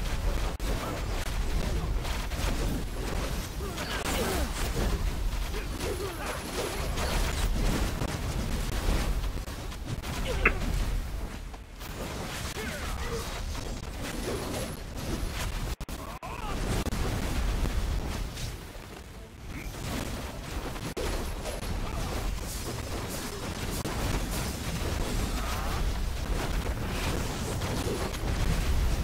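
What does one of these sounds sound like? Game spell effects whoosh and crash in a busy battle.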